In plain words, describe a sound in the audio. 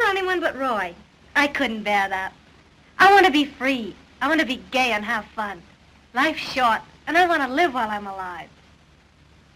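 A young woman speaks dreamily and with feeling, close by.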